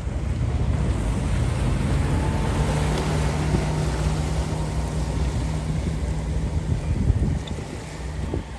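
A small motorboat's engine drones close by as it passes.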